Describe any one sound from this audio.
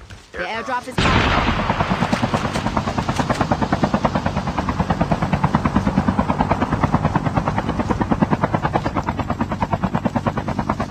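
An aircraft engine roars with a fast, steady throbbing.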